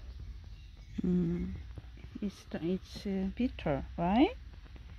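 A small kitten mews loudly and repeatedly, close by.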